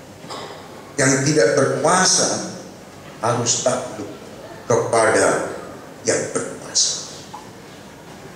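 A middle-aged man preaches with animation through a microphone.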